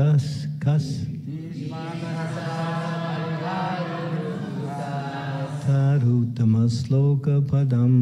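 A man sings a slow chant into a microphone, heard through loudspeakers in an echoing room.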